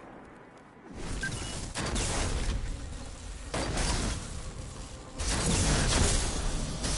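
Electric bolts crackle and zap loudly in bursts.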